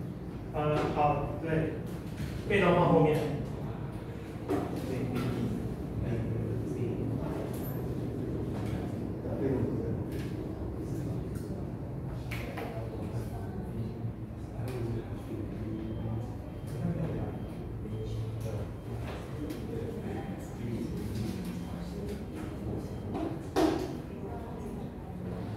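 A middle-aged man lectures calmly into a microphone in a large room.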